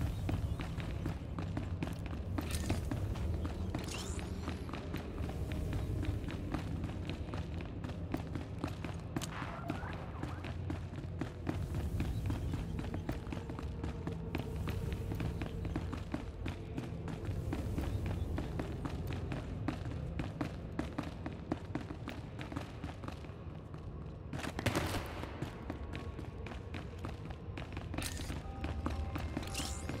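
Footsteps run quickly across a hard stone floor.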